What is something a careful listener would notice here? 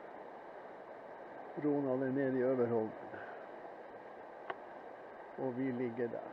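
Water of a river flows and ripples steadily.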